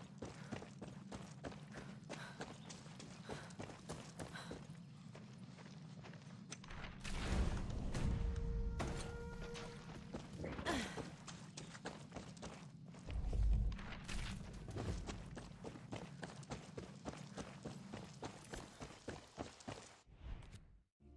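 Footsteps crunch steadily over rocky ground.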